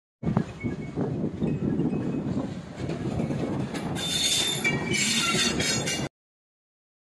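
A diesel train rumbles past along the tracks.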